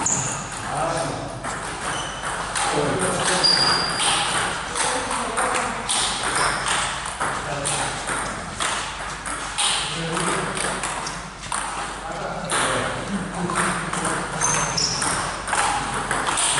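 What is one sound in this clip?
A ping pong ball clicks back and forth between paddles and table, echoing in a large hall.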